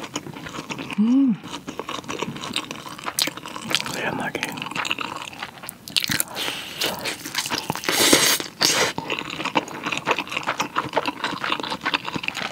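A young woman chews food with wet, smacking sounds close to a microphone.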